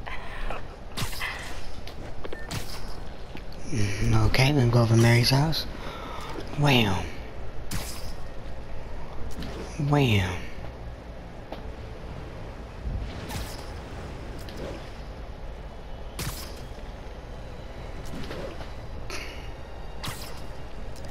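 Short whooshing snaps sound as a web line shoots out again and again.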